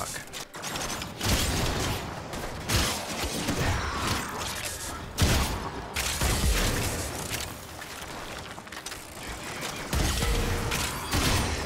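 A blade slashes and strikes enemies with heavy thuds.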